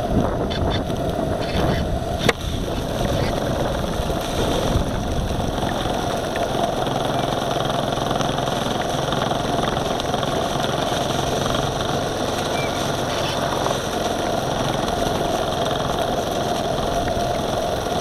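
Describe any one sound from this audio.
A small boat's motor hums steadily close by.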